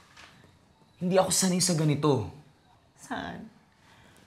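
A young woman speaks up close with rising emotion.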